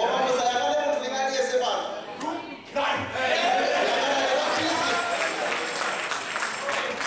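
A man preaches loudly and with animation through a microphone in an echoing hall.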